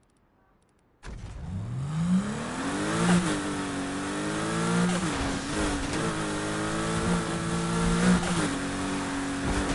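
A sports car engine starts and idles with a deep, rumbling note.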